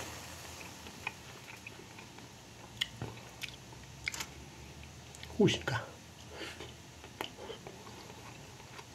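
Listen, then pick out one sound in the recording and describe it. A fork clinks and scrapes against a plate.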